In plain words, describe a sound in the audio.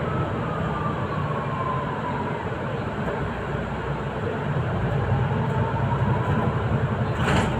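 A bus motor whines, its pitch gliding down and back up.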